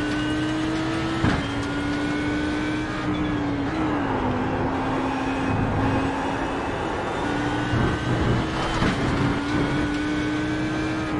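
A race car engine roars steadily, its pitch dropping and climbing with gear changes.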